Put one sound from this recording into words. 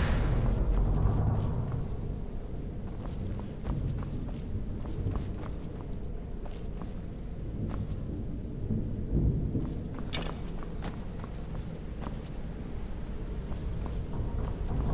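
Footsteps walk steadily across a stone floor.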